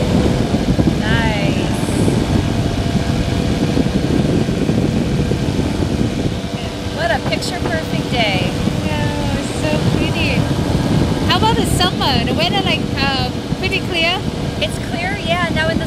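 A man talks loudly over the engine noise.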